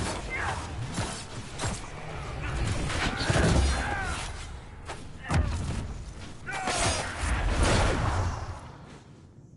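Magic blasts and explosions boom and crackle.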